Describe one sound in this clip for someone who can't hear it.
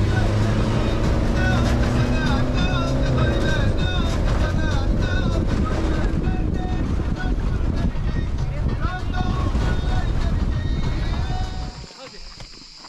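A vehicle engine rumbles while driving over a bumpy dirt track.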